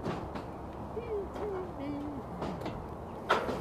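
A bird calls outdoors.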